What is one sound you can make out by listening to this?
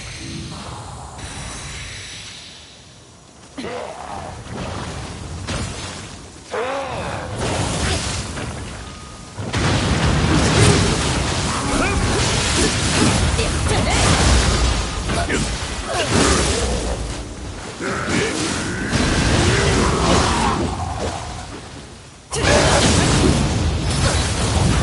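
Swords clash and strike in a fast fight.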